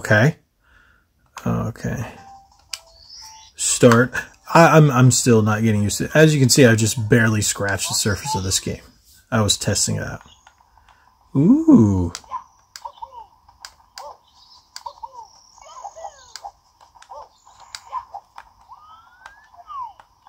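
Buttons click on a game controller.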